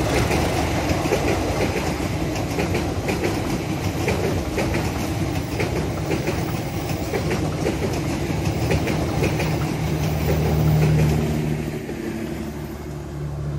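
Train wheels clack rhythmically over rail joints.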